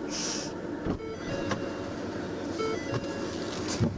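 A car's rear hatch slams shut.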